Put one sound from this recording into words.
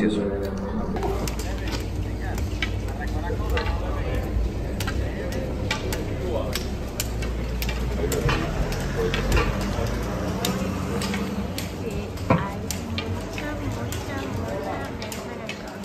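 Trekking poles tap on a paved street.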